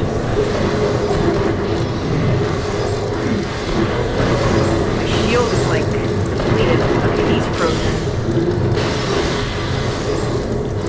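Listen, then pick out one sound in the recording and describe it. Guns fire rapidly in a video game.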